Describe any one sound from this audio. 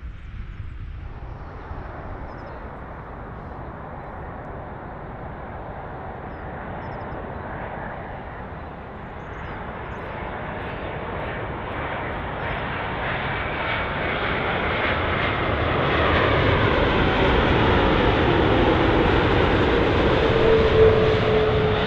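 A jet airliner roars overhead on its approach, growing steadily louder with a whining engine tone.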